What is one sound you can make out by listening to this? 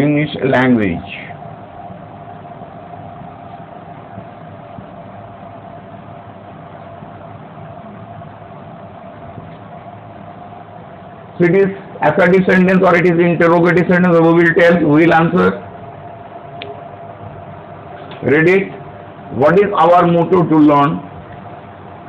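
An older man speaks calmly and clearly, as if lecturing.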